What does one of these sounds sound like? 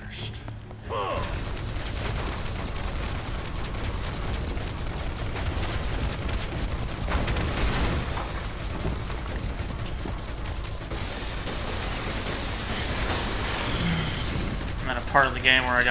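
A gun fires in rapid, continuous bursts.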